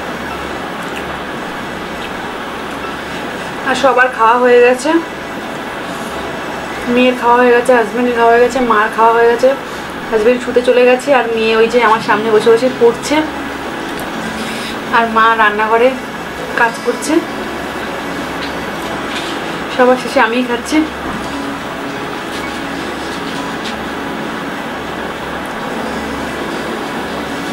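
Fingers squish and mix fried rice on a plate.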